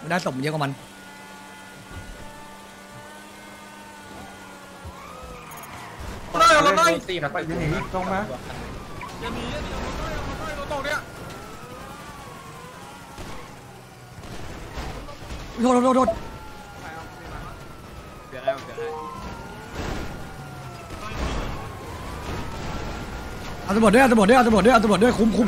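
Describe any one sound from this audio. A sports car engine roars and revs as it speeds along.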